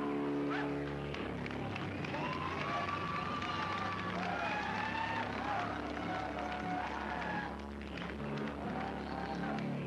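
A crowd shouts and cheers loudly nearby.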